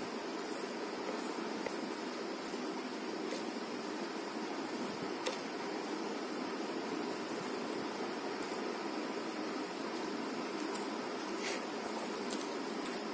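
Fingers squish and mix soft rice on a plate close up.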